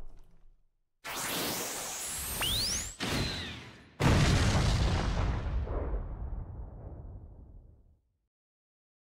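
An energy blast whooshes and fades away.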